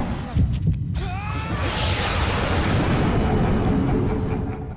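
A young man screams in fright.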